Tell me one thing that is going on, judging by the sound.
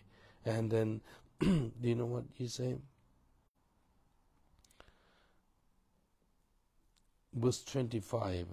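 A middle-aged man speaks calmly and close to a microphone, pausing between phrases.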